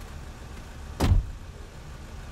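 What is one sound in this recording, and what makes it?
A car door slams shut with a thud.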